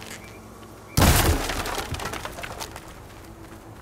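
Wooden crates smash with a loud crash.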